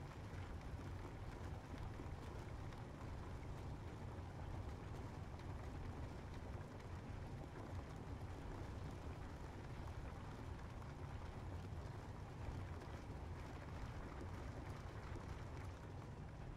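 Jet engines rumble steadily with a low drone.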